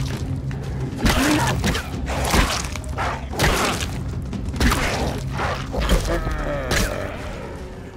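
A club strikes an animal with heavy thuds.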